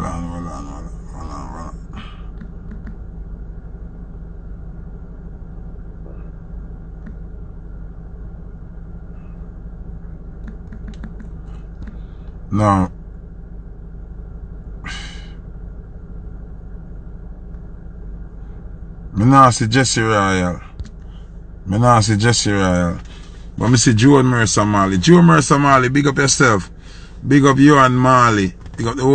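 A man talks close to a phone microphone.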